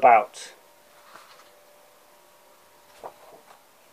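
A paper page is turned.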